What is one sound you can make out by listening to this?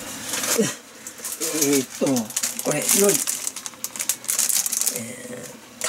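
A plastic package crinkles and rustles.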